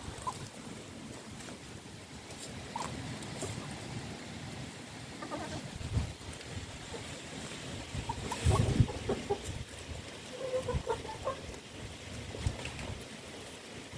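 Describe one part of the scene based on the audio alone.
Chickens peck and scratch at the ground.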